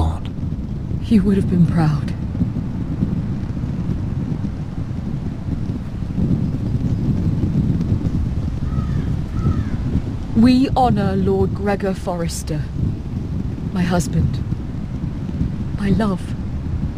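A woman speaks with sorrow, close by.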